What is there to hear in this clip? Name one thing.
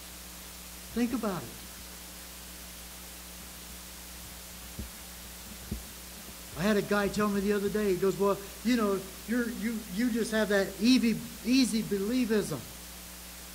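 An elderly man speaks calmly and earnestly into a microphone.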